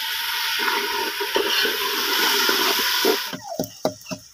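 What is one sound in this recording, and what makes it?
A fire roars and crackles under a pot.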